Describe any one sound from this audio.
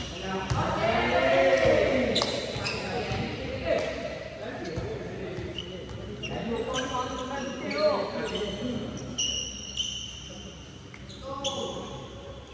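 A volleyball is struck with the hands.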